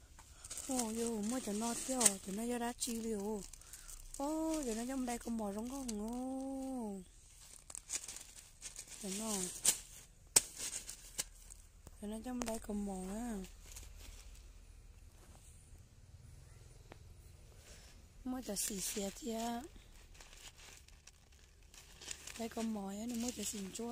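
Plastic bags crinkle and rustle under a hand.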